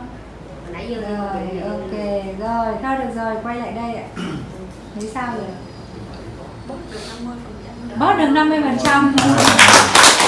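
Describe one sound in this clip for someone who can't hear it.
A middle-aged woman speaks calmly and close by.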